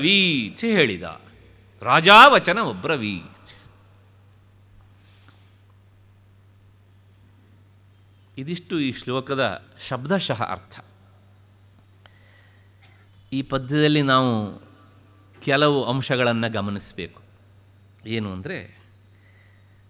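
An elderly man speaks calmly, with long pauses.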